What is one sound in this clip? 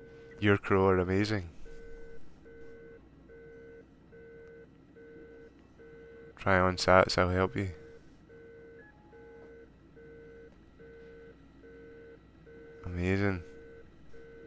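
A man speaks with animation in short bursts.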